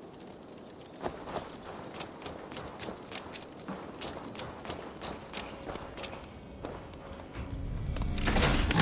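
Footsteps thud steadily on the ground and on a wooden floor.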